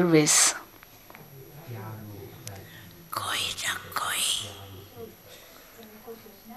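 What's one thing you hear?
An elderly woman speaks calmly and slowly into a microphone.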